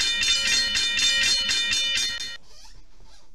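A railroad crossing bell rings rapidly.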